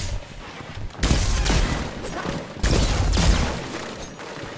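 Gunshots fire in loud, quick bursts.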